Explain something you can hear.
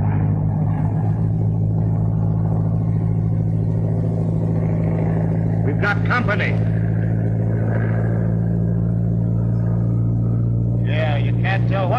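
Airplane engines drone steadily.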